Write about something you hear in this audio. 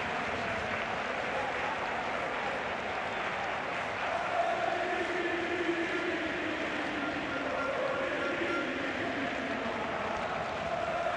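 A large stadium crowd roars and cheers all around.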